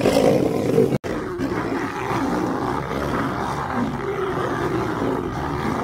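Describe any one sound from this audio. Lionesses growl and snarl while fighting.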